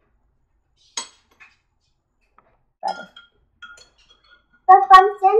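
A spoon clinks against a glass.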